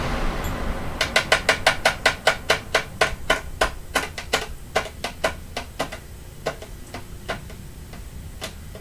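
An electric fan ticks rapidly as its blades slow down, the clicks growing slower and softer.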